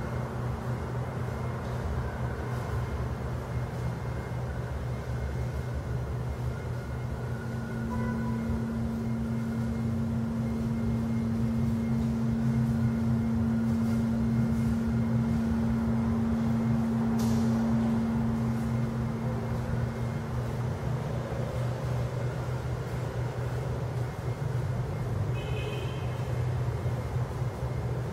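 A long taut wire hums and drones as it is drawn and pulled, in a large echoing hall.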